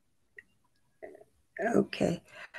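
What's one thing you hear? An elderly woman speaks slowly over an online call.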